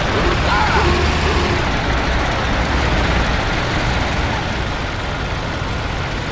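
Tyres rumble over a cobbled road.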